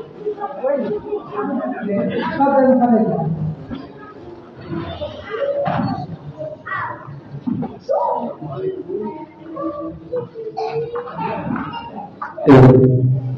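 A woman speaks into a microphone over loudspeakers in an echoing hall.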